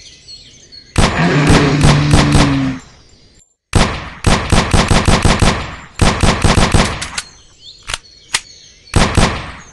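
A pistol fires shot after shot in quick bursts.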